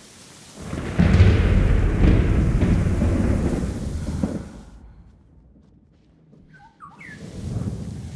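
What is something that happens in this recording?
Tall grass rustles as someone pushes through it.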